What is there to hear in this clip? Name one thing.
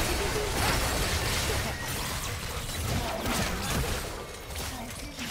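Video game spell effects crackle and clash in a busy fight.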